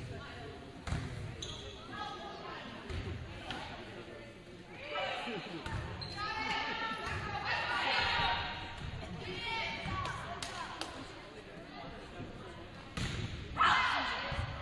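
A volleyball is struck by hand in an echoing gym.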